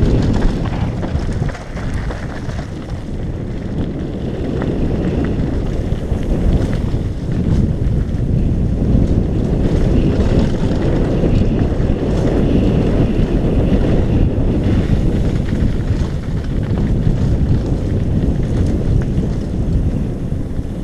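Bicycle tyres roll and crunch over a rough gravel trail.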